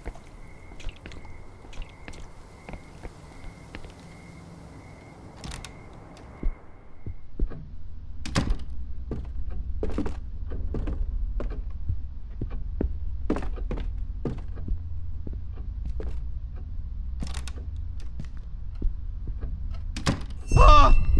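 Footsteps thud on a hard floor at a steady walking pace.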